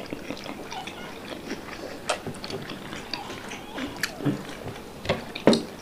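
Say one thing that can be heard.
Young people chew and slurp food close by.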